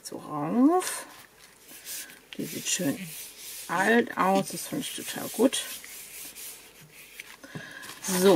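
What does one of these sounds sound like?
Hands rub and smooth paper flat.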